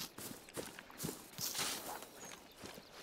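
Leaves and branches brush and swish against a body moving through them.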